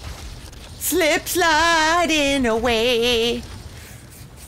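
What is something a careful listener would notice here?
A young woman sings a short, wavering line into a close microphone.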